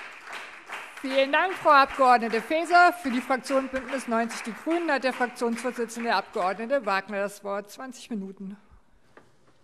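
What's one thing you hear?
An elderly woman speaks calmly through a microphone in a large hall.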